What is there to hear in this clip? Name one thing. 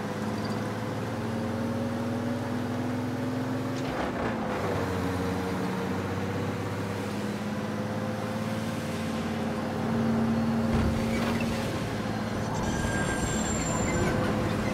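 A truck's tyres roll over the road.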